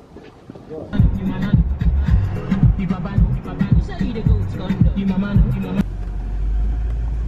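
A car engine rumbles while driving.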